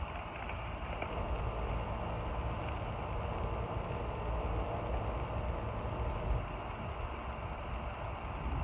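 Seeds patter lightly onto bare soil.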